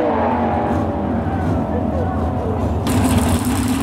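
Two race car engines roar as the cars accelerate down a strip.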